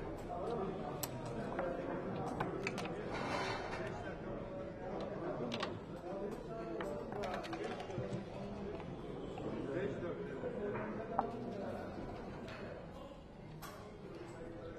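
Wooden checkers click against a board.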